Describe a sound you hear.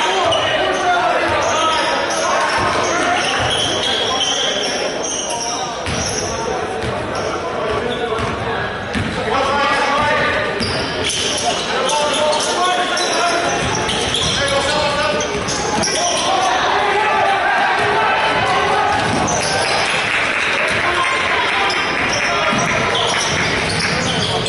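Spectators chatter and shout in a large echoing gym.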